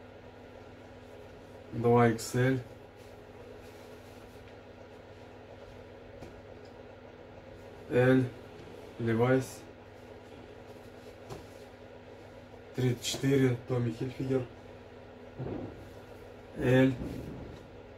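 Fabric rustles as clothes are laid down and smoothed by hand.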